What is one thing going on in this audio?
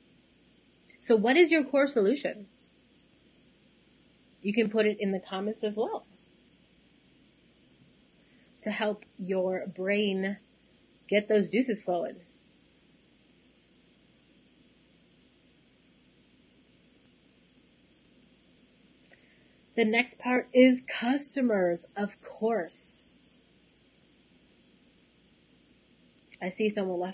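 A woman speaks calmly in short phrases over a microphone.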